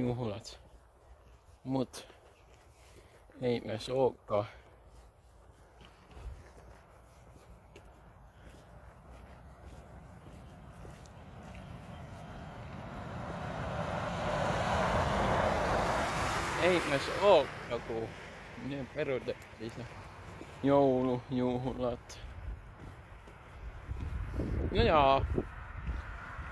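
A young man talks close by in short bursts, outdoors.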